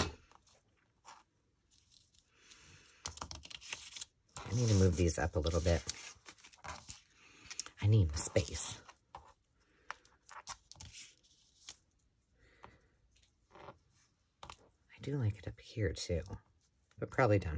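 Paper rustles and crinkles as it is handled and smoothed flat.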